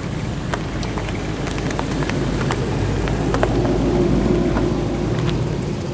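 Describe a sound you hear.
A second sports car engine idles and rumbles as the car approaches.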